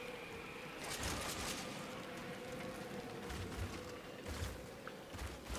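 Heavy footsteps thud on soft ground.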